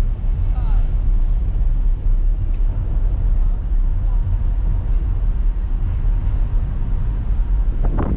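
A train rumbles along an elevated track overhead.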